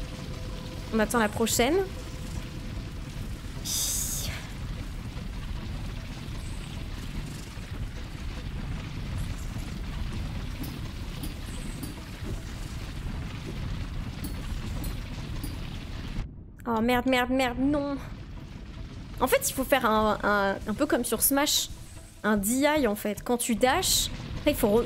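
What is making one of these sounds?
A young woman talks with animation, close to a microphone.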